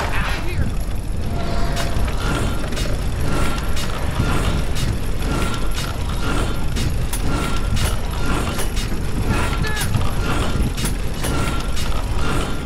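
Metal gears click and clank into place.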